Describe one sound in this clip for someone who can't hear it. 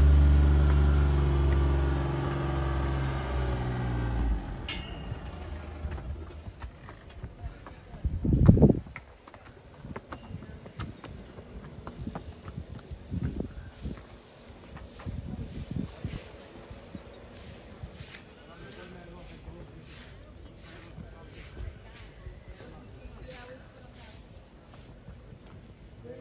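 Footsteps climb stone steps outdoors.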